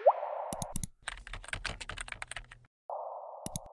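Keyboard keys click rapidly in quick typing.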